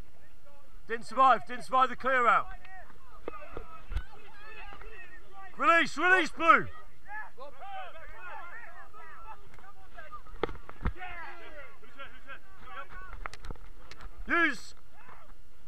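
Young men shout loudly close by, outdoors.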